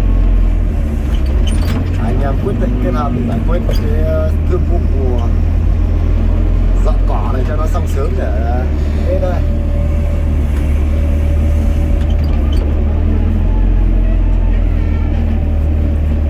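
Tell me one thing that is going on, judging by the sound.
An excavator engine rumbles steadily up close.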